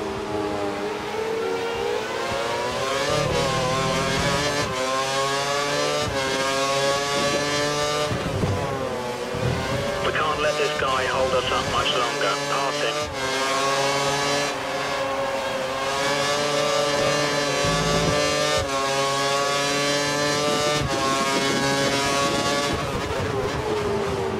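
A video-game Formula One V8 engine screams, revving up through the gears.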